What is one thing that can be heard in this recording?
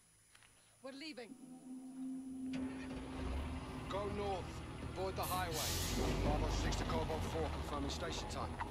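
A truck engine starts and rumbles.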